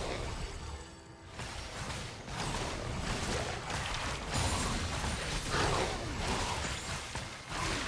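Game spells crackle and boom in a fast battle.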